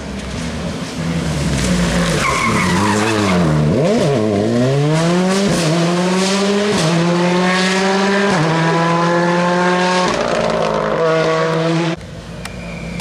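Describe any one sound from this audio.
A rally car engine roars loudly as it speeds past, rising and falling in pitch with each gear change.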